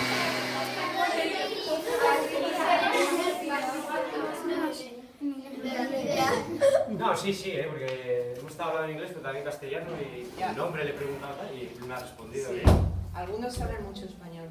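Children talk and laugh in a room.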